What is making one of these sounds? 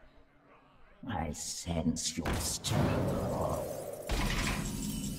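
Magical game sound effects whoosh and chime.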